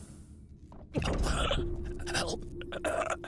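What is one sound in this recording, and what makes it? Sparks crackle and hiss from a damaged machine.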